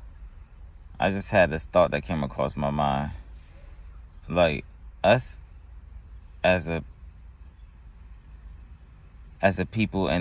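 A man speaks slowly and drowsily, close by, in short bursts with pauses.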